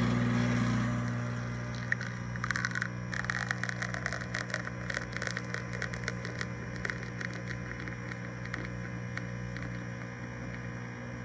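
Coffee trickles into a cup.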